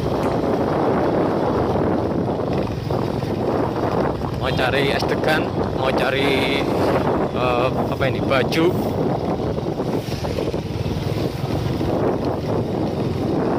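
Other motorcycles pass by nearby.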